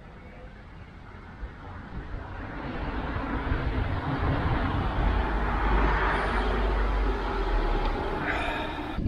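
Wind rumbles and gusts outdoors, growing stronger.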